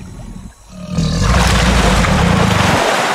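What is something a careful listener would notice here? Water splashes and rushes loudly.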